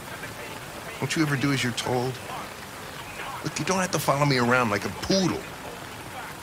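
A middle-aged man speaks irritably, close by.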